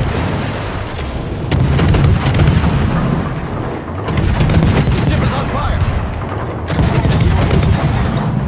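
Shells explode with heavy rumbling blasts.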